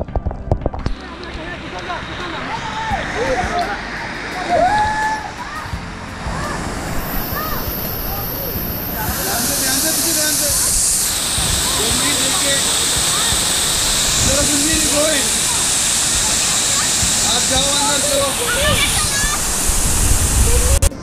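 A young woman calls out excitedly nearby.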